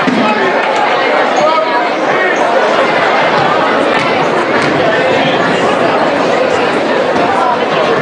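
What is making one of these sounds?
A group of young women chant together in unison.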